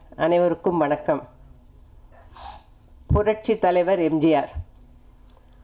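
A middle-aged woman speaks with animation into a microphone, heard through a loudspeaker.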